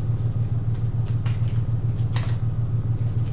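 Playing cards rustle softly in a woman's hands.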